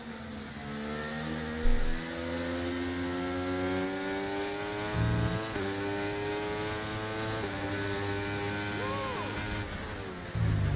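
A racing car engine whines, rising in pitch and dropping briefly at each gear change.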